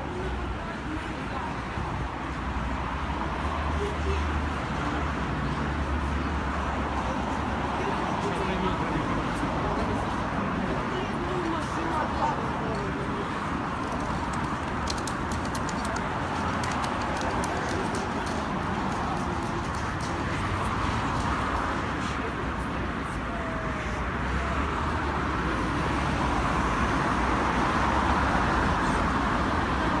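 Road traffic hums steadily nearby outdoors.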